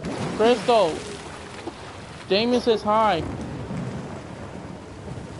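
Water sloshes and splashes around.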